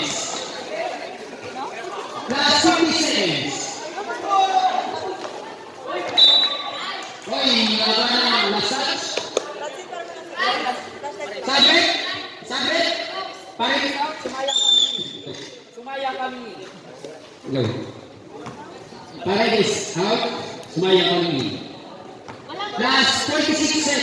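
Women nearby talk and shout with animation in a large echoing hall.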